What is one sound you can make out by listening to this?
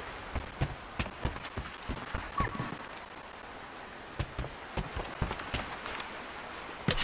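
Footsteps thud on wooden boards.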